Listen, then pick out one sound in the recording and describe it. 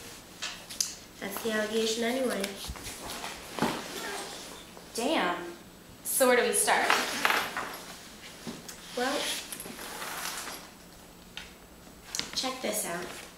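A bag rustles as it is handled.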